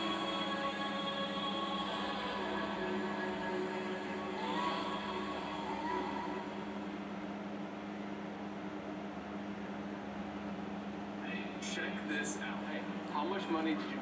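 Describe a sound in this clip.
Video game music plays through a television speaker.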